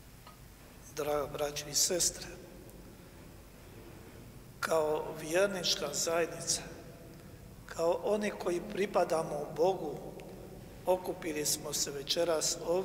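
An elderly man speaks slowly and solemnly into a microphone, echoing in a large hall.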